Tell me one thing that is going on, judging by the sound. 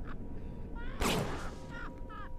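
A revolver fires a single shot.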